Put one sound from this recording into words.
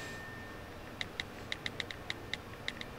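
A phone's keys click quickly as a message is typed.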